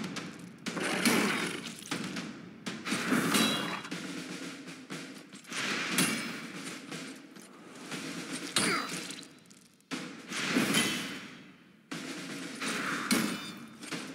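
Monsters snarl and screech.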